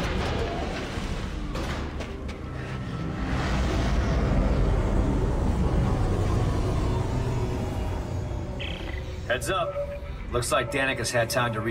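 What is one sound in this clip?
Wind howls outdoors.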